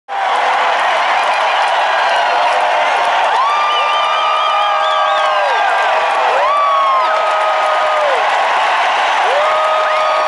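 A large crowd cheers and shouts.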